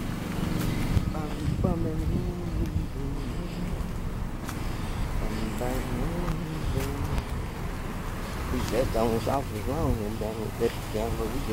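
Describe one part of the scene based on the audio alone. A woman speaks casually, close to a phone microphone.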